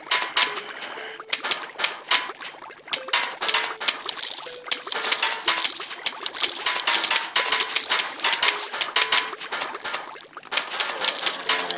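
Cartoon plants fire peas with quick popping shots.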